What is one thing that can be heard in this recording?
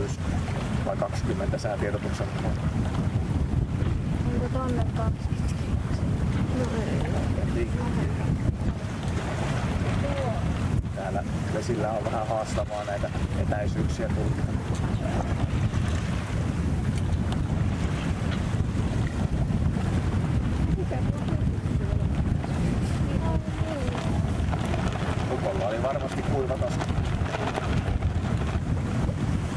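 A middle-aged man talks calmly nearby.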